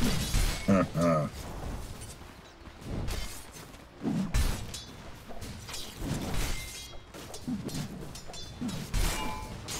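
Weapons strike with sharp hits.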